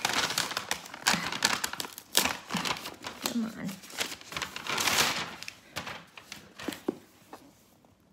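Plastic packaging crinkles and rustles as hands unwrap a parcel.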